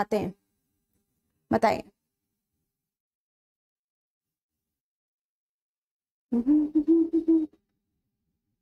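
A young woman speaks in short bursts close to a microphone, with long pauses.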